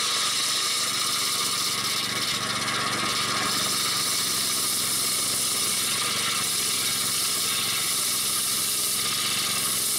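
A circular saw rips through wood with a harsh whine.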